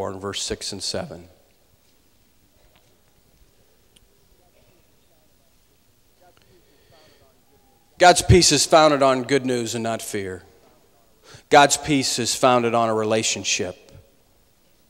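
A man speaks calmly through a microphone, with pauses, in a large echoing hall.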